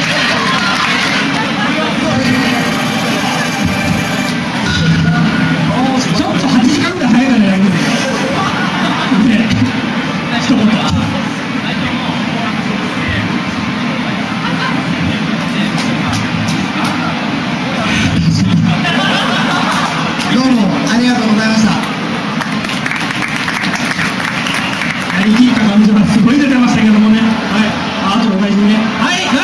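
Loud music plays from an arcade machine's speakers.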